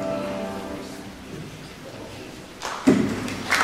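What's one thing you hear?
A children's choir sings in a large echoing hall.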